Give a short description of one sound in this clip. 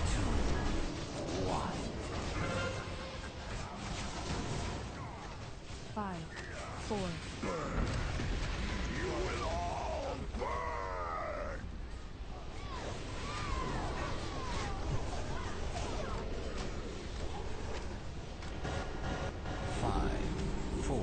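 Magic spells whoosh and crackle amid a chaotic fight.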